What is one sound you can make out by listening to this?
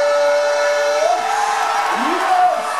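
A large crowd bursts into loud cheers.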